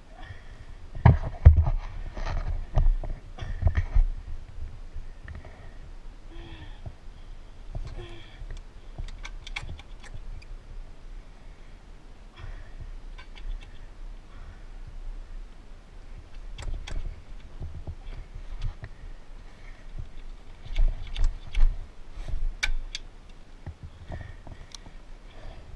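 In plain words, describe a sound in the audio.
A small motorbike rattles and clunks as it is handled.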